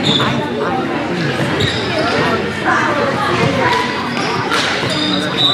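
Young women shout and call out to each other.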